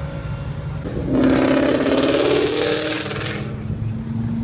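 A V8 Ford Mustang accelerates hard past.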